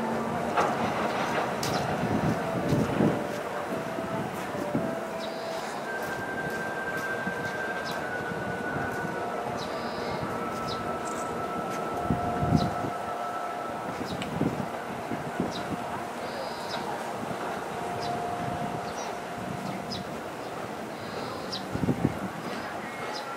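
Wheels click and clack rhythmically over rail joints.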